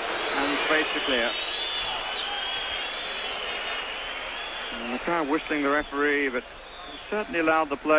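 A large stadium crowd murmurs and calls out in the open air.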